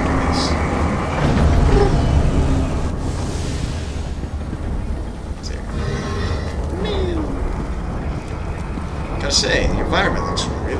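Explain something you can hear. A magical energy beam hums and crackles.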